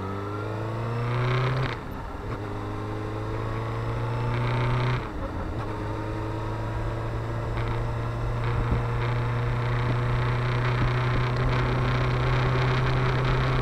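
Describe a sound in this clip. Wind rushes past the rider at speed.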